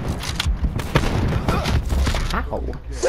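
An automatic rifle fires a burst of shots.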